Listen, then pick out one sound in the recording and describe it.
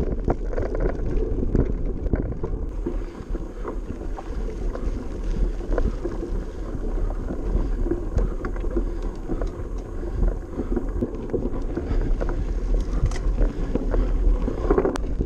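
Wind rumbles steadily across a close microphone.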